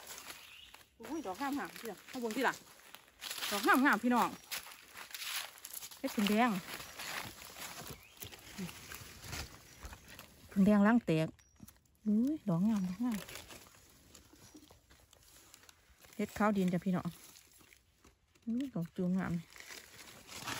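A middle-aged woman talks calmly close by.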